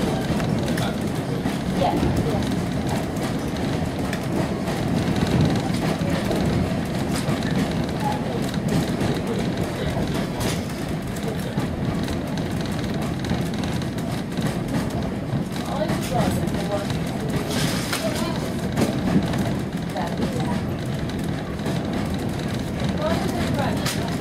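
Train wheels clatter and click over rail joints.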